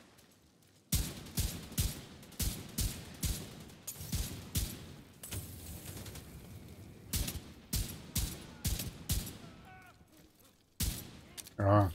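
Rifle shots crack in bursts with a short echo.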